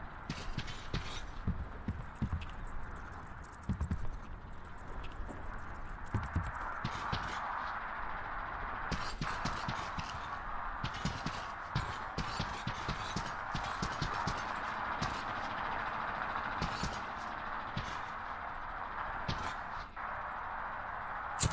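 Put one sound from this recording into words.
Footsteps thud and crunch over debris.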